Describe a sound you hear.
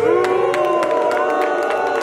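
An elderly man claps his hands above his head.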